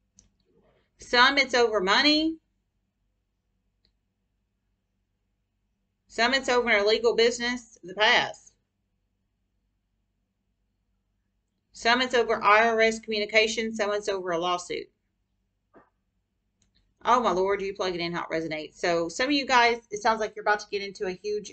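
A young woman speaks calmly and close by, in short bursts with pauses.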